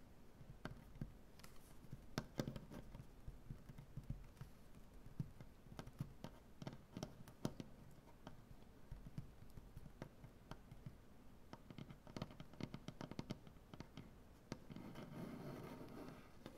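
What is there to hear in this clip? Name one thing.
Fingernails tap and click on a wooden surface.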